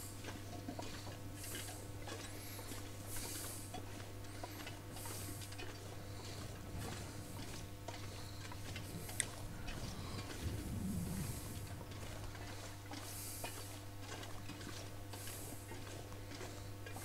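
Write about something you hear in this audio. Wind gusts through snowy trees outdoors.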